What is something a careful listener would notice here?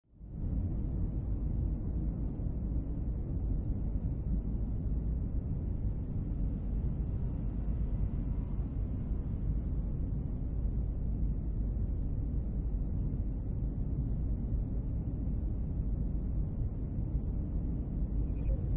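A deep engine rumble hums steadily.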